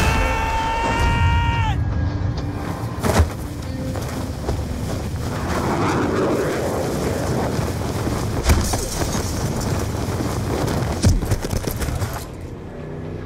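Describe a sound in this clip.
Wind rushes loudly past.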